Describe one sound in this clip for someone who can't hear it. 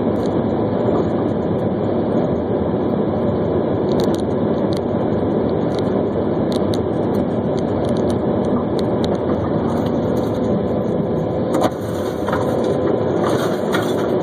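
Tyres roar on asphalt from inside a moving car.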